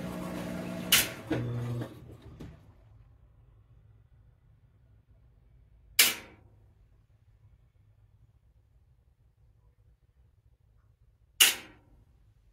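A washing machine clicks sharply now and then.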